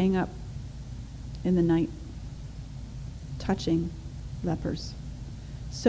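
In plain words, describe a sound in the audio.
A woman speaks slowly and calmly into a microphone, with pauses.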